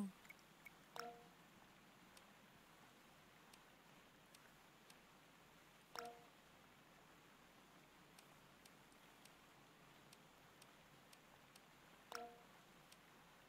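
A short game menu chime sounds now and then.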